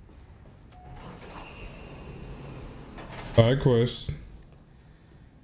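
An elevator hums as it moves.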